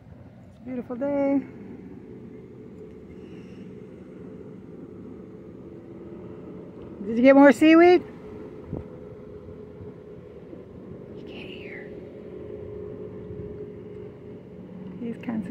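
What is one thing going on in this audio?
Water laps gently against the shore.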